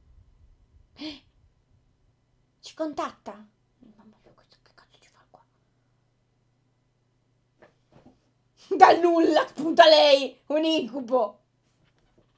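A young woman talks and laughs with animation, close to a microphone.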